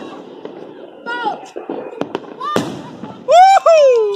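A firework bursts with sharp bangs and crackles.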